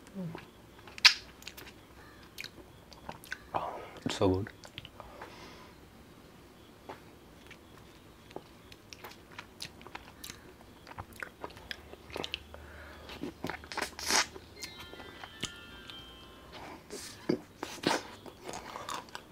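A man bites and chews an ice lolly with crunchy clicks.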